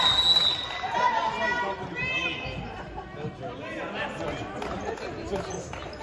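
Sneakers squeak on a gym floor in an echoing hall.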